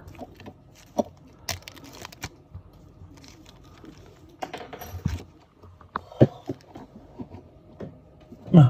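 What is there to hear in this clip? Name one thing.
Old bronze coins click and slide on a wooden table.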